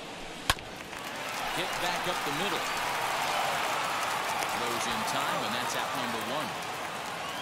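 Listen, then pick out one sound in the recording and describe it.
A crowd cheers in a large stadium.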